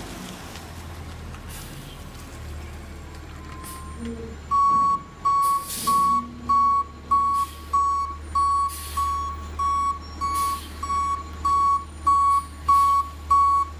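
A garbage truck's engine rumbles nearby.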